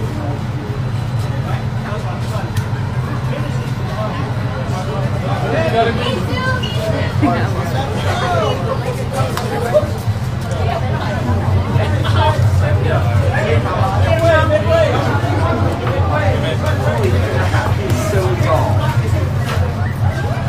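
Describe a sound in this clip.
A crowd of young people chatters and calls out nearby outdoors.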